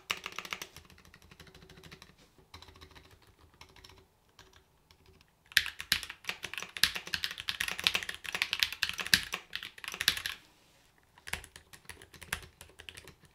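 Fingers type softly on a quieter keyboard.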